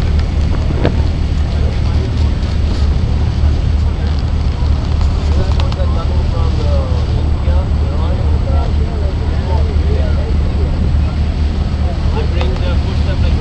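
Water splashes against a moving boat's hull.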